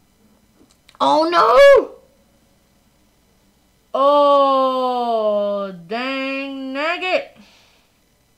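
A young woman cries out in long, drawn-out wails close to a microphone.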